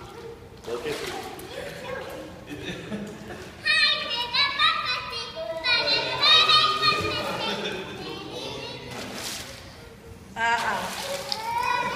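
Water splashes as children kick and paddle.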